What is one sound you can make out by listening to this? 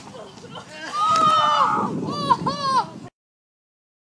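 Young men shout and laugh outdoors.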